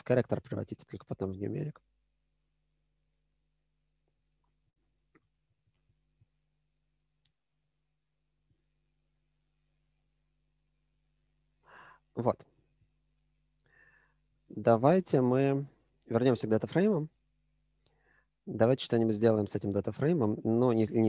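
A man speaks calmly and explains things close to a microphone, with pauses.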